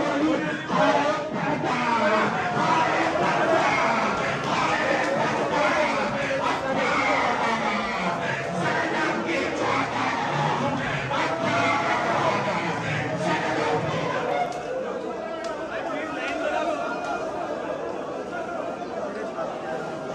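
A dense crowd of men chants and shouts loudly close by.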